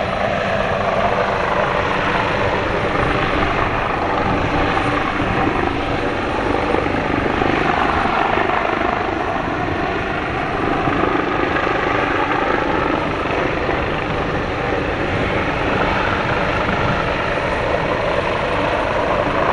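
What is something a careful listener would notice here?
A helicopter's rotor blades thump loudly as its engine whines steadily.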